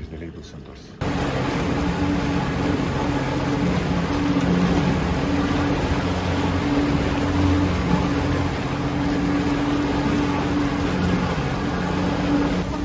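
Water rushes and churns behind a speeding boat.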